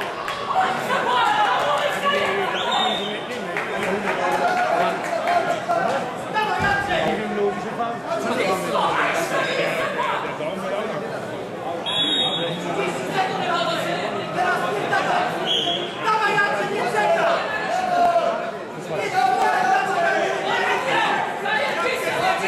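A large crowd chatters in a big echoing hall.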